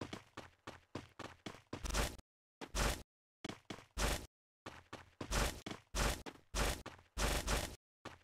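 Quick footsteps patter on a hard road.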